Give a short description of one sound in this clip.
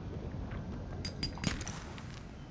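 A short click sounds as something is picked up.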